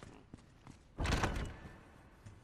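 A wooden door bangs open.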